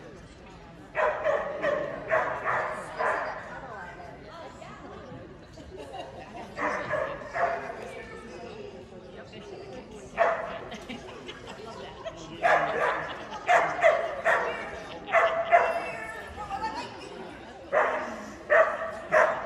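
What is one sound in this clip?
A woman calls out loudly in a large echoing hall.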